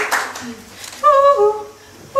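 A woman speaks close by with animation.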